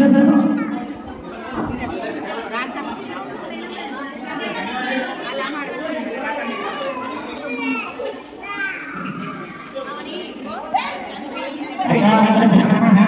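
A crowd of men and women chat and murmur nearby.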